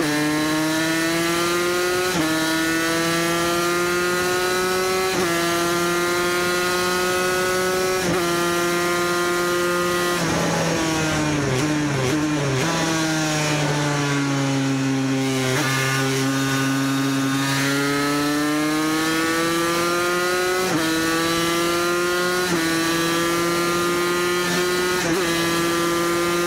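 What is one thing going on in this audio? A motorcycle engine roars loudly at high revs, rising through the gears and dropping as it slows into a corner.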